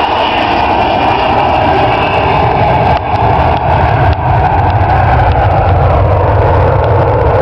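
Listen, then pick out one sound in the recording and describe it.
A large jet airliner roars loudly as it takes off.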